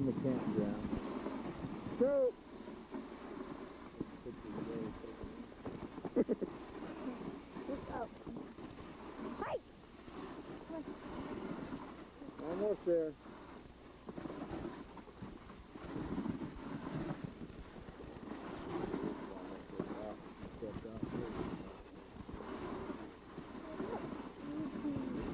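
A team of sled dogs patters over packed snow.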